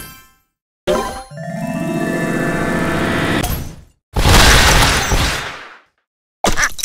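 A game power-up whooshes and explodes in a long sparkling blast.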